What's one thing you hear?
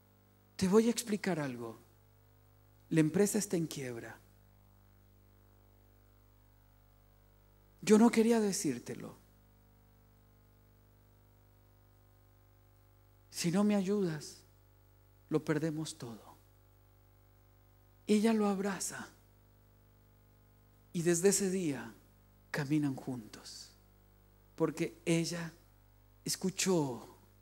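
A middle-aged man speaks into a microphone in short, emphatic bursts with long pauses.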